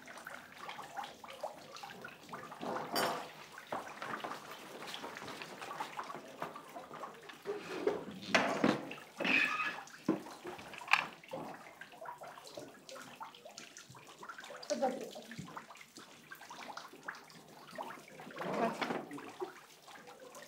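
A woman talks quietly at close range.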